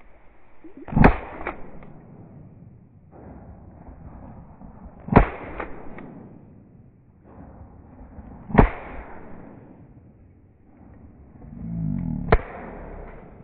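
A shotgun fires loud, booming shots outdoors.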